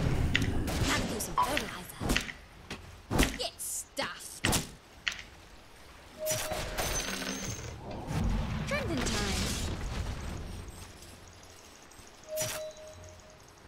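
Game battle effects clash and burst in quick, sharp hits.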